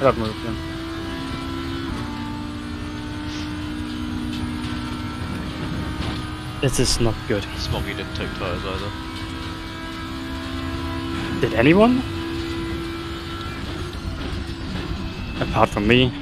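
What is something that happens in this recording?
A racing car engine revs up and down sharply as gears shift.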